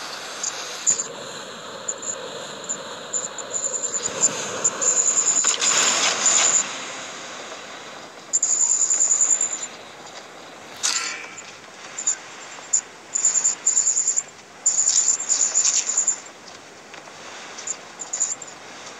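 Wind rushes steadily past during a fall through the air.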